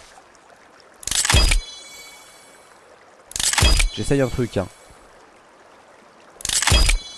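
A bowstring snaps as an arrow whooshes away.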